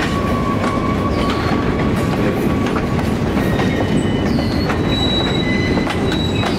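Steel wheels squeal against the rails.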